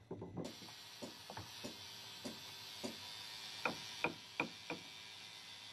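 A small hammer taps on a wooden plank.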